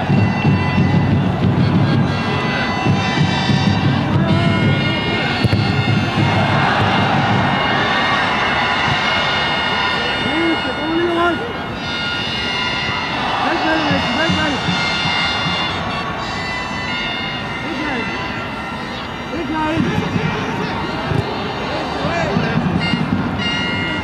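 A crowd murmurs and cheers in a large open stadium.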